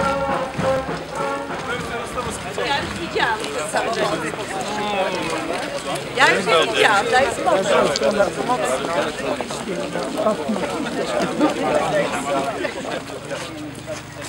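A crowd of men and women chatter while walking outdoors.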